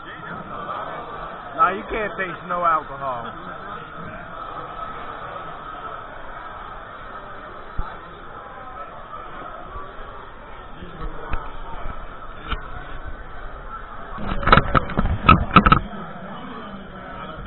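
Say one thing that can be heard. A crowd chatters in a busy, noisy room.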